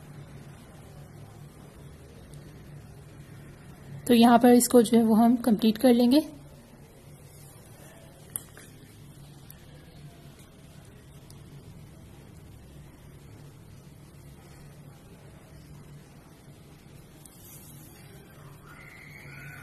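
Thread rasps softly as it is pulled through taut cloth.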